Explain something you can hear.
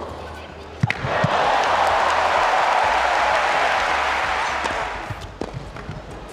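A large crowd cheers and applauds loudly in a big arena.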